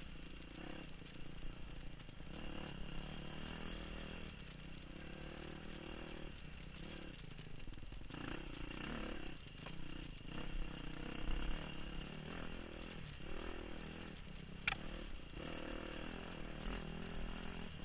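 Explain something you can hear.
A dirt bike engine revs and roars steadily up close.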